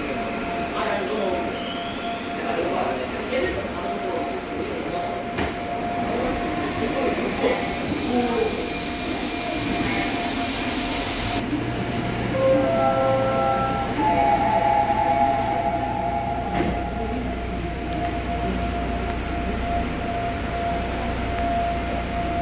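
A subway train rumbles and hums as it runs along the track.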